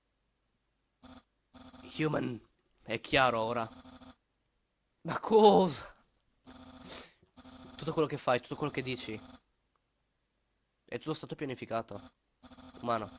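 A young man speaks with animation into a microphone, in short bursts.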